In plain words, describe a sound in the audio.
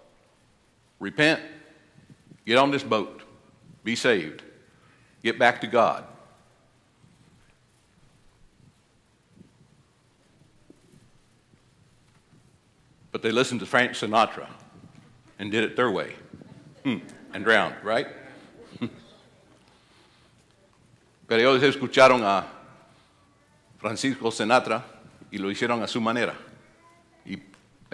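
An elderly man speaks calmly through a microphone in a large hall, pausing between phrases.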